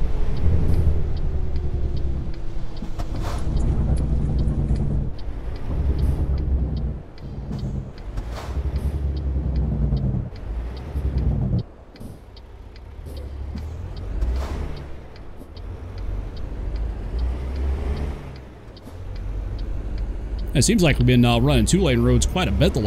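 A truck's diesel engine rumbles steadily, its pitch rising and falling as it changes speed.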